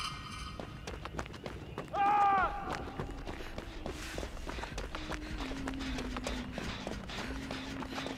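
Footsteps run quickly over grass and twigs.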